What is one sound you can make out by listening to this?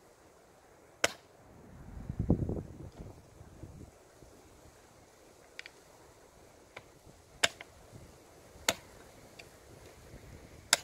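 Small objects knock and clatter sharply close by.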